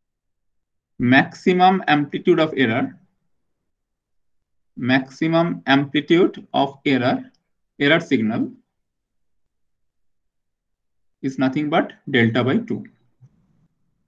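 A man speaks calmly through a microphone, like a lecturer explaining, in short bursts with pauses.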